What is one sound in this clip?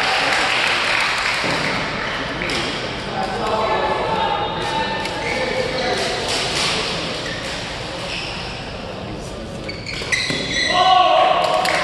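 Badminton rackets smack a shuttlecock again and again in a large echoing hall.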